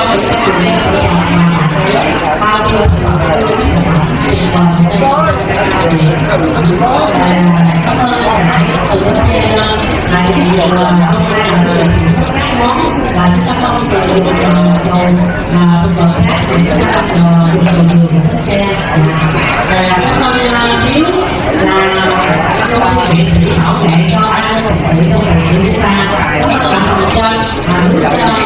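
A group of men and women chat and talk over one another close by.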